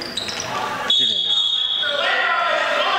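A referee's whistle blows a short shrill blast.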